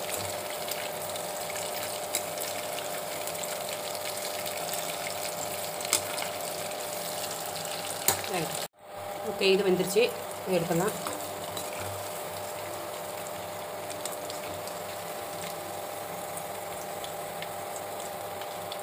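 A metal ladle scrapes against a metal pan.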